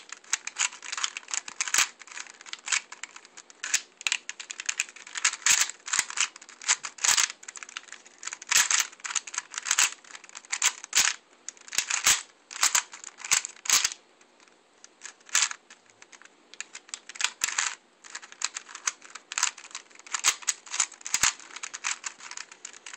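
A puzzle cube's plastic layers click and clack as they are turned quickly, up close.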